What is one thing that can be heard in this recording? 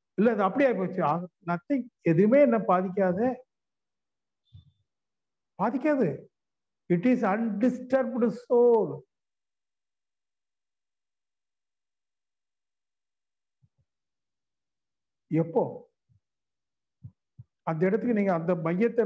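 An elderly man speaks with animation, in pauses, through a microphone on an online call.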